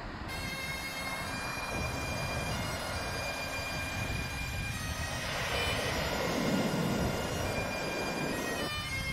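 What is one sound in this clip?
Waves break and roll in with a steady roar.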